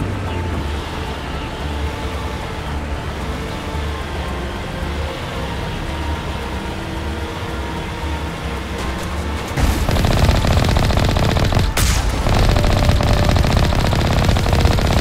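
Water splashes and churns under rolling wheels, growing louder.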